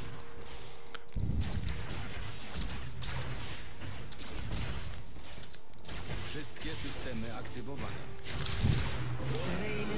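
Magic blasts zap and crackle in quick bursts.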